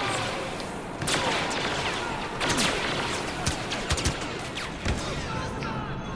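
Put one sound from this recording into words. Blaster rifles fire in rapid bursts of sharp zaps.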